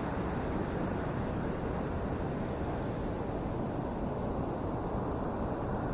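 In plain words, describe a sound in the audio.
Waves break and wash onto a beach nearby.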